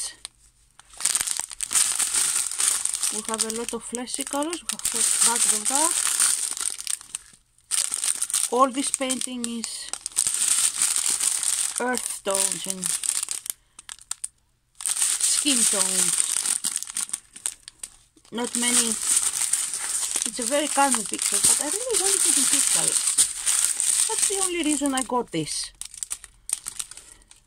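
Plastic bags crinkle and rustle close by.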